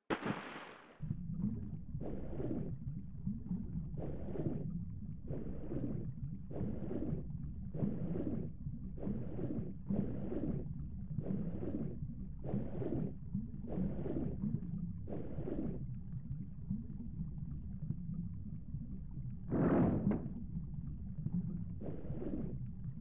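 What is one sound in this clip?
Water rumbles low and steadily, as if heard from under the surface.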